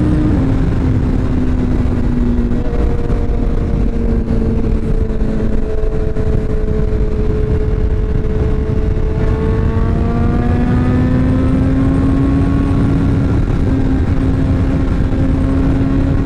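A motorcycle engine hums steadily, rising and falling in pitch.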